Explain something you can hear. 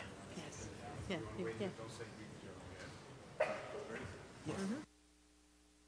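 People murmur and talk quietly in a large hall.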